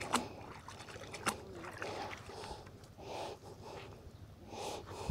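Water splashes and drips as a wet rope is hauled out of the water.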